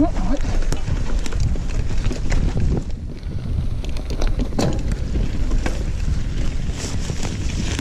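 Bike tyres roll and rattle over a bumpy dirt trail.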